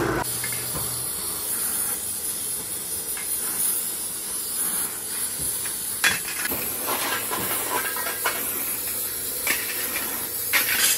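A gas torch hisses steadily.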